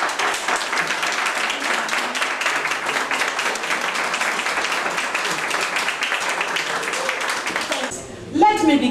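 A crowd claps steadily in a room.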